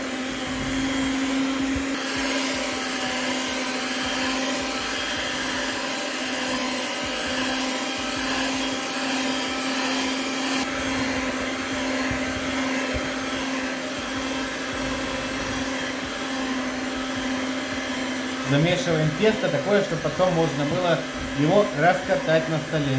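An electric hand mixer whirs steadily as it beats batter.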